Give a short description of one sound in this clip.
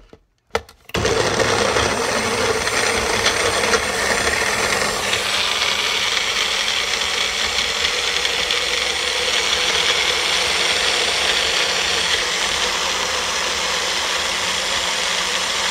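A blender whirs loudly, chopping and grinding.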